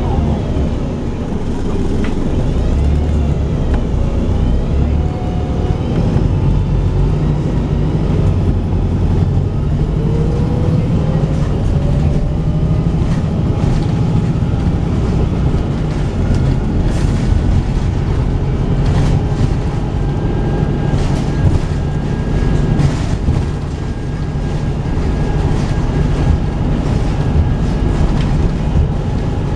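A bus engine rumbles steadily from inside as the bus drives along a road.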